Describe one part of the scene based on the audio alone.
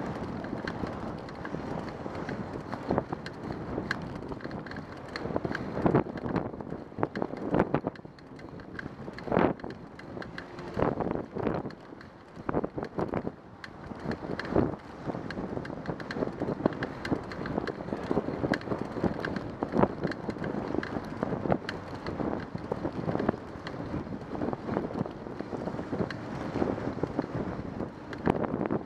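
Bicycle tyres hum and rattle on a smooth path.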